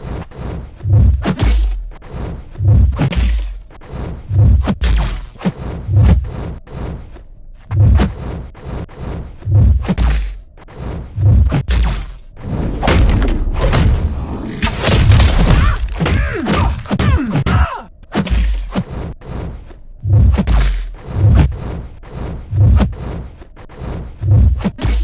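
Punches and kicks from a video game fight land with sharp thuds and whooshes.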